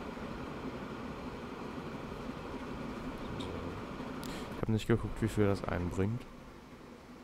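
A train rolls along rails with a steady rumble.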